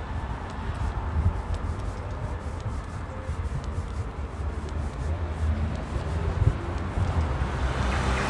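Footsteps fall on stone paving.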